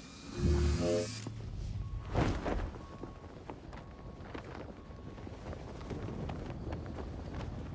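Wind rushes softly past a gliding figure.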